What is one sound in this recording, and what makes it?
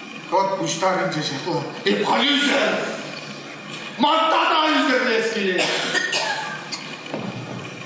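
A man speaks with strong emotion, his voice carrying in a large room.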